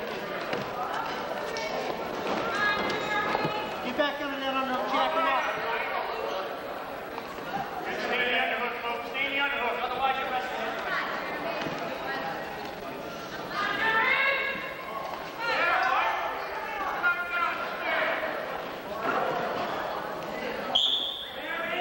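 Spectators in the stands shout and cheer with echoes in a large hall.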